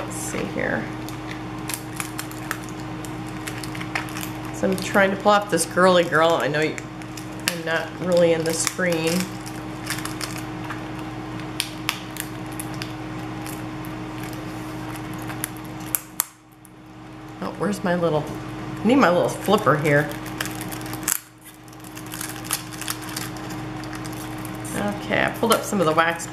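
Paper rustles and crinkles as stickers are peeled from a sheet.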